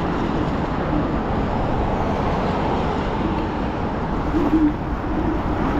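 Tyres hum on a wet road.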